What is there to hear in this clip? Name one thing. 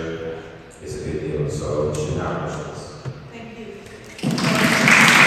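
A man speaks into a microphone in a large echoing hall.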